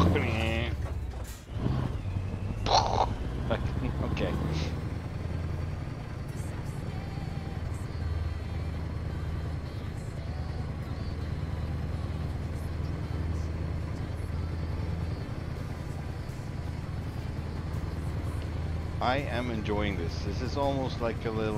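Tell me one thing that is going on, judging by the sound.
A truck engine rumbles steadily at low speed.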